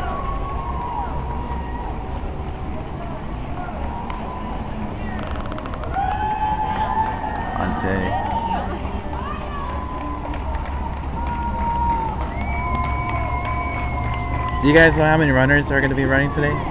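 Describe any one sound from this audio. Spectators cheer and shout nearby outdoors.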